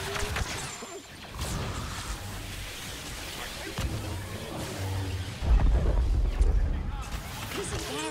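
Explosions boom with a deep rumble.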